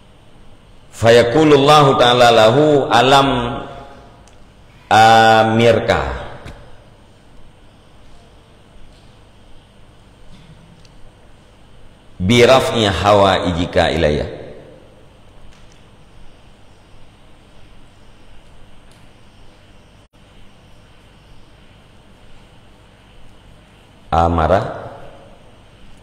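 A man chants melodically into a close microphone in long phrases with pauses.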